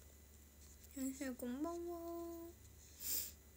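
A young woman speaks softly, close to the microphone.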